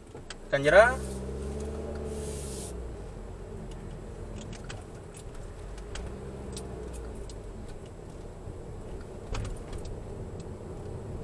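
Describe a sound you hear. A car engine hums from inside as the car drives down a street.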